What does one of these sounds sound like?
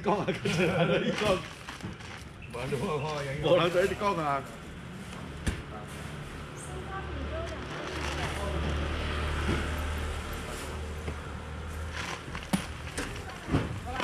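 Shellfish rattle in a plastic basket.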